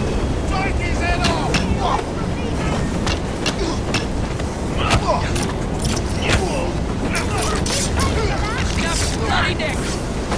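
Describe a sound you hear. Punches and blows thud in a scuffle.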